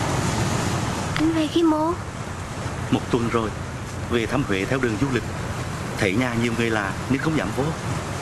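Sea waves wash against a rocky shore.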